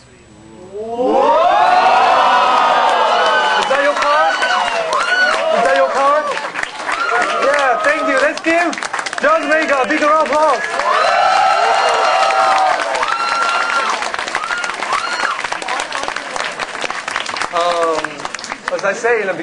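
People clap and cheer loudly.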